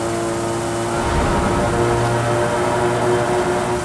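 A car engine's roar echoes inside a tunnel.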